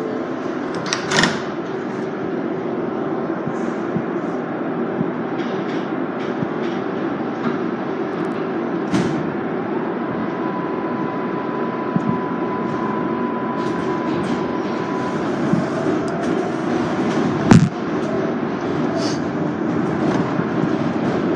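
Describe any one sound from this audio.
A subway train rumbles loudly along the tracks.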